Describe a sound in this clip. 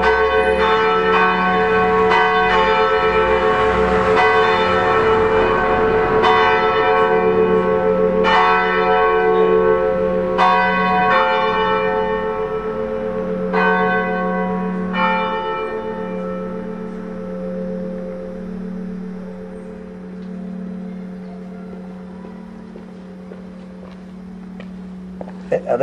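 A church bell rings out in repeated strikes, then its hum slowly fades.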